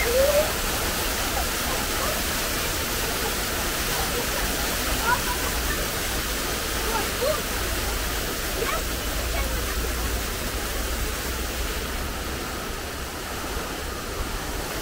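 Water pours and splashes steadily down a stone wall into a pool.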